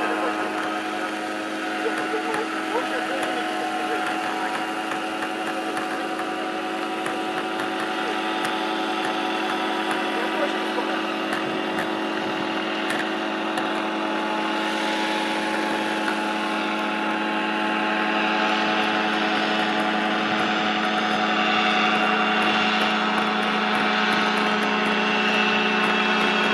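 A small helicopter's rotor and engine drone steadily overhead.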